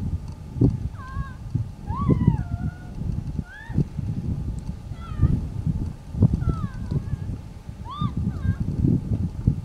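A man shouts far off across open ground.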